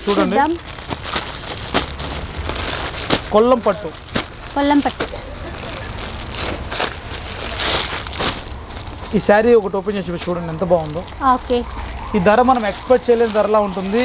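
Plastic wrapping crinkles and rustles as packets are handled.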